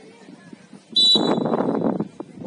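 A referee's whistle gives a short blast.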